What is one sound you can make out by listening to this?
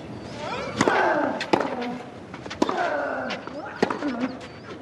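A tennis ball is struck sharply by a racket, back and forth.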